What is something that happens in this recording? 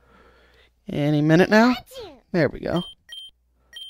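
A cartoon creature gives a short electronic cry.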